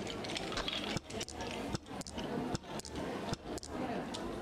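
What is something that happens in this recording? Mahjong tiles click down onto a table.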